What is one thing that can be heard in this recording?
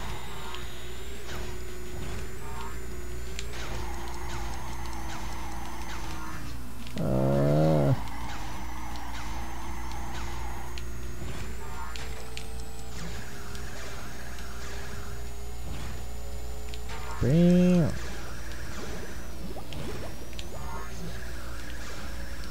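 A racing kart's engine drones steadily.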